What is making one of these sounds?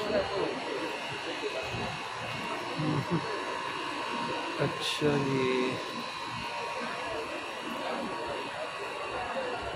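Men and women murmur and chatter in a busy street.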